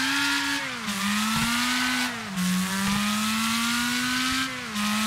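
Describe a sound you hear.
A racing car engine roars at high revs, dropping in pitch with each gear change.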